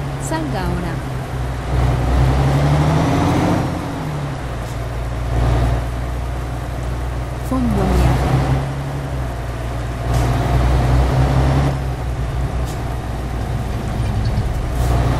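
A truck engine drones steadily, rising and falling in pitch as it shifts gears.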